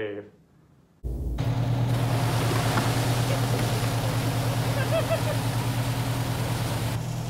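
A fire hose sprays water hard onto pavement.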